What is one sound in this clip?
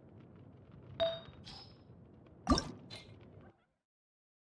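A magical shimmer swells as an item glows.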